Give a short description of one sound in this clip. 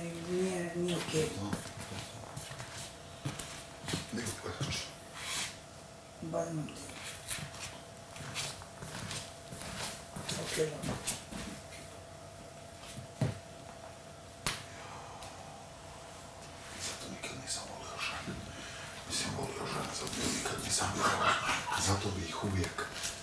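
A man's footsteps shuffle softly across the floor.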